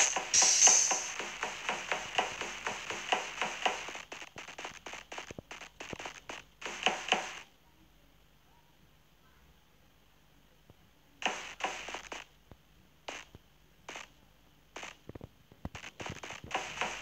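Quick footsteps patter on a hard floor, stopping for a few seconds before starting again.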